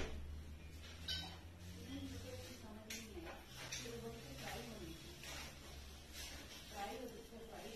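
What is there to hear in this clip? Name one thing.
A parrot makes soft chattering calls.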